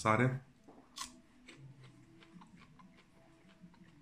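A man crunches on a raw green onion.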